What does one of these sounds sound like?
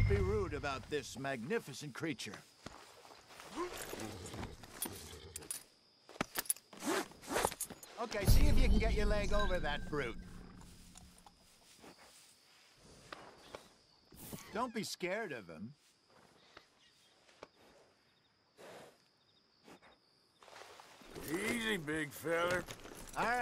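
A man speaks calmly in a low, gruff voice close by.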